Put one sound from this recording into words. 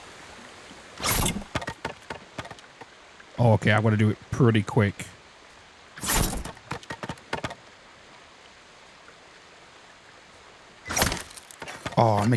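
A sword swiftly slices through bamboo stalks with a sharp swish.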